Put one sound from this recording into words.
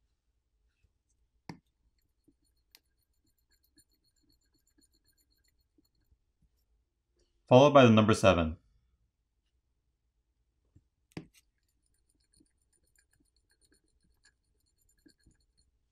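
A metal pick scrapes lightly across glass.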